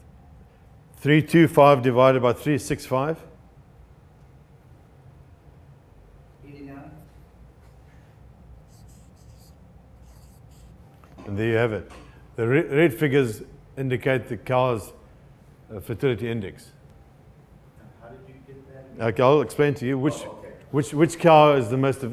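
An older man speaks calmly nearby, pausing between phrases.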